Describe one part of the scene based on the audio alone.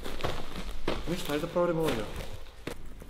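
A young man speaks briefly in a loud voice nearby.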